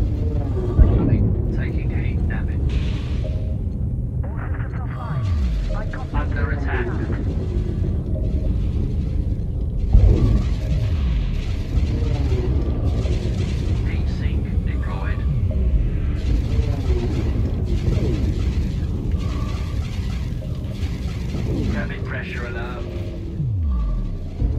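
A spacecraft engine hums steadily.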